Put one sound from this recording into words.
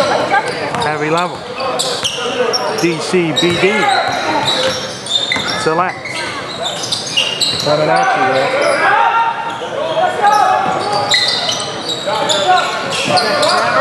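A basketball bounces on the floor as players dribble.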